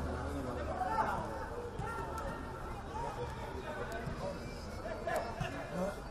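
Male football players shout to each other across an open outdoor pitch.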